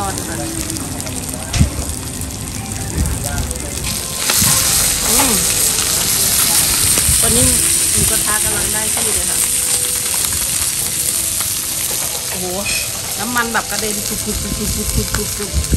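Chopsticks clink against a metal pot.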